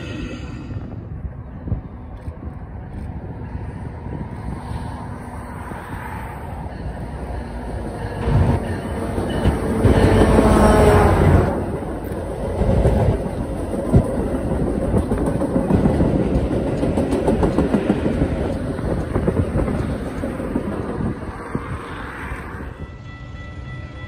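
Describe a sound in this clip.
Cars and trucks hum steadily along a nearby highway.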